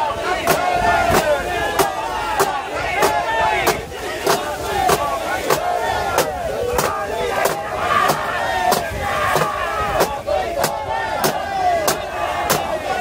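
A crowd of men chants loudly in rhythm.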